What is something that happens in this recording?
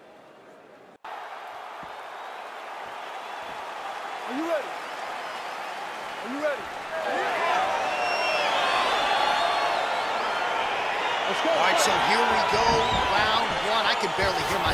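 A large crowd cheers and whistles in an echoing arena, growing louder.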